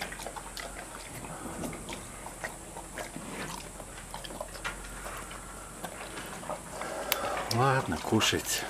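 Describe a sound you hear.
A bear sniffs and snuffles close by.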